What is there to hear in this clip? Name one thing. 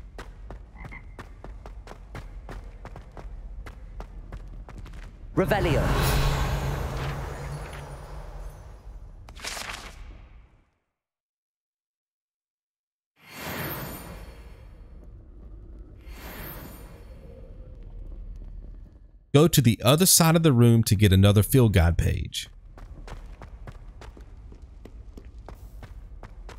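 Footsteps tap on stone floors and stairs.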